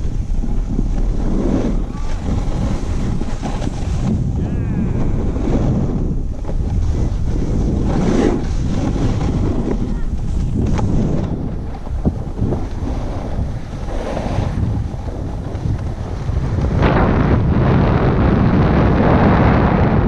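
Wind rushes loudly past the skier.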